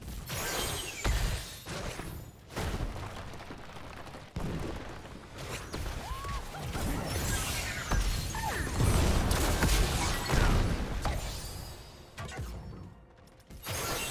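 Game characters clash with blasts, zaps and impacts in a fast battle.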